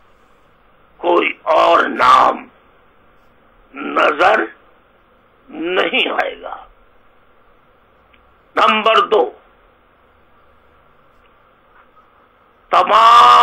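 A middle-aged man speaks slowly and deliberately into a microphone, pausing between phrases.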